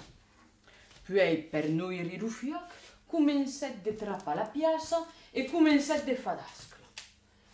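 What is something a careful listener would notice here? A young woman speaks expressively nearby.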